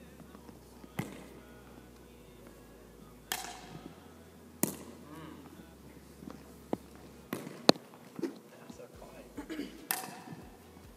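A paddle strikes a plastic ball with sharp pops, echoing in a large hall.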